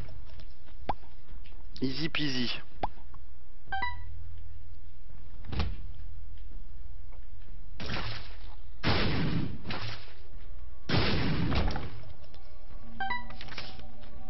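Video game shots pop and splash in quick bursts.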